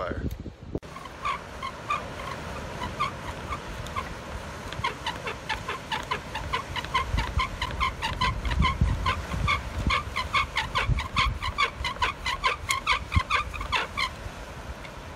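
A saw rasps back and forth in quick, even strokes.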